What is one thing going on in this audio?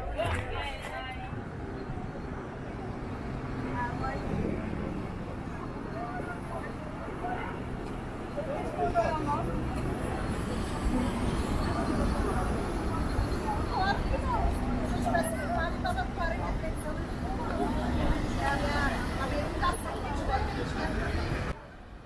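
Voices of a crowd of people chatter outdoors nearby.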